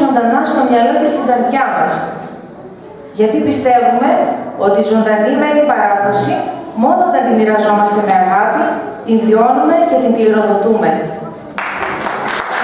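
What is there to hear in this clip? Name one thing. A woman declaims loudly and expressively on a stage.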